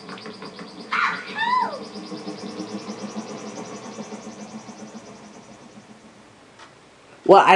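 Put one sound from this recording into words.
A flying ship's engine drones and slowly fades away.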